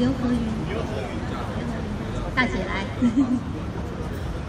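A woman speaks loudly through a microphone outdoors.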